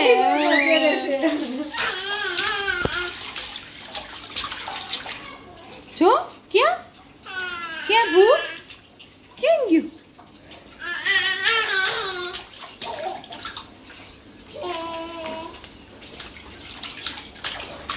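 A baby splashes water in a metal sink.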